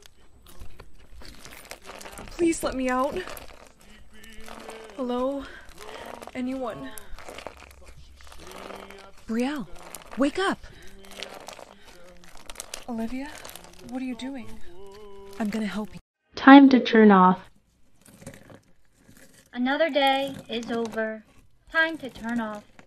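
Slime crackles and squishes as fingers knead it.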